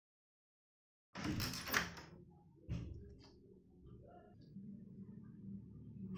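Bare feet step softly on a tiled floor.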